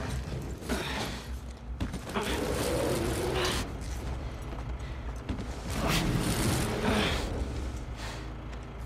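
Clothing and gear rustle as someone climbs over a counter.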